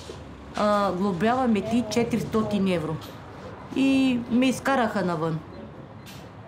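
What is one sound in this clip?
An elderly woman speaks calmly, close by.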